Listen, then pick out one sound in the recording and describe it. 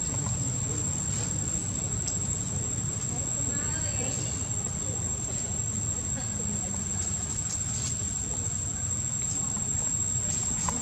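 A baby monkey patters over dry leaves and twigs.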